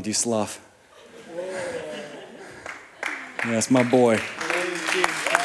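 An audience murmurs and chatters.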